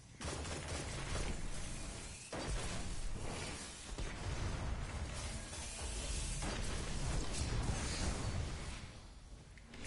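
Energy blasts crackle and explode.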